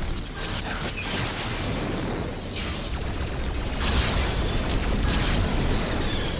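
Laser guns fire in rapid bursts.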